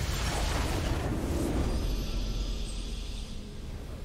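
A triumphant victory fanfare plays.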